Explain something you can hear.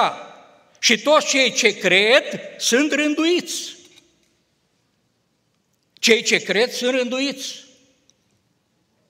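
A middle-aged man speaks with emphasis through a microphone.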